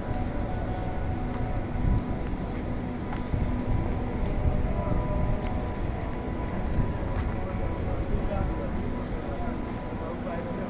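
Footsteps tap on paving stones outdoors.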